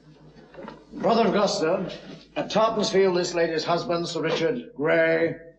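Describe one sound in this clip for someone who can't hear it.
A man reads out loudly and forcefully.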